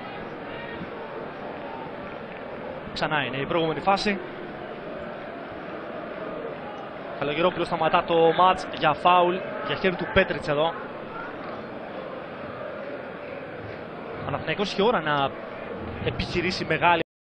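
A large crowd roars and chants in a stadium.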